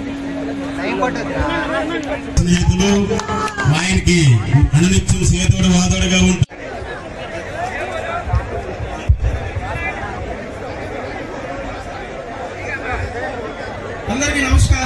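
A crowd of people chatters and calls out in a large open space.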